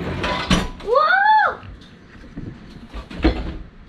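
A dishwasher door shuts with a thud.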